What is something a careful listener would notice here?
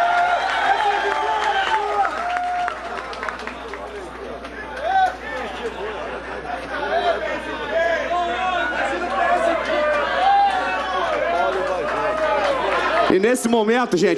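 A crowd of men and women chatters and cheers nearby.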